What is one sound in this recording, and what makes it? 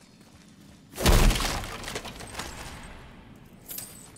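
A heavy crash booms and rumbles away.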